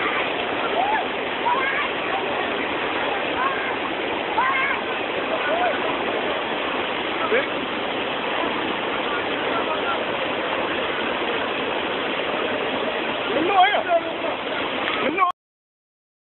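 A flooded river rushes and roars loudly over rocks.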